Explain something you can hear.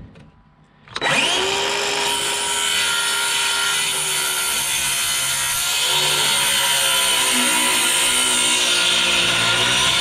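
A circular saw whirs loudly, steady and high.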